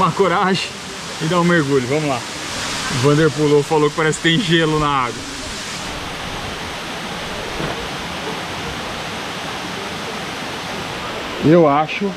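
A waterfall rushes steadily outdoors.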